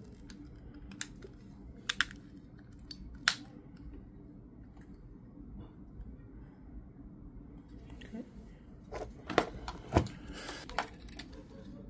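Plastic clicks and snaps as a car key fob is handled and opened.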